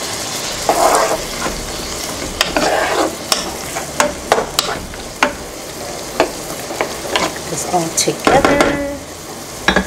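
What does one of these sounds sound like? A wooden spatula scrapes and knocks against a frying pan.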